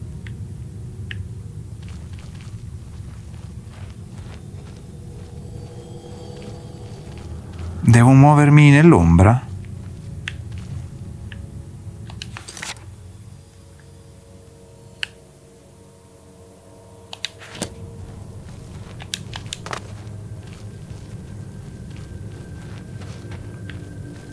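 Footsteps tread slowly on a stone floor in an echoing hall.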